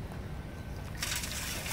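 Rice grains patter into a metal bowl.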